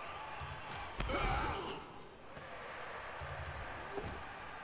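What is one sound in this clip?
Armoured players collide with a heavy thud.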